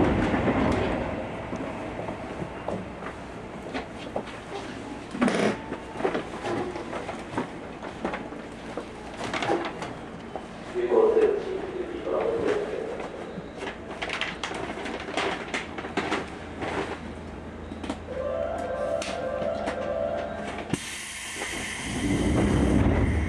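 A train's cabin hums quietly while stopped.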